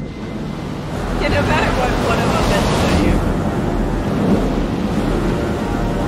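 Heavy waves crash and surge.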